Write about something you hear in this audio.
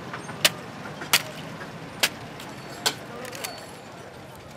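Metal parts knock and clatter sharply.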